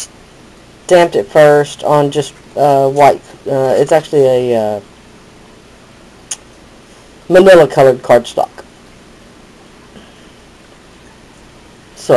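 Stiff paper cards rustle softly as they are handled.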